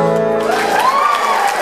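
A guitar chord rings out and fades.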